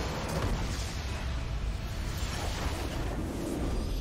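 A structure explodes with a deep boom in a video game.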